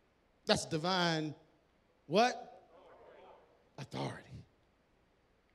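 A man speaks loudly and with animation into a microphone in a large hall.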